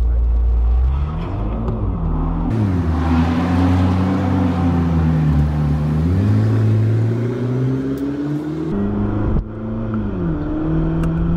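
A sports car engine revs loudly, rising and falling in pitch.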